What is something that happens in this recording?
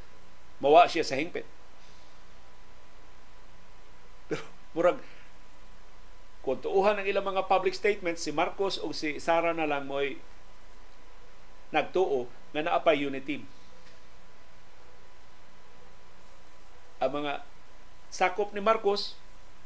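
An older man speaks with animation into a close microphone, in short bursts with pauses.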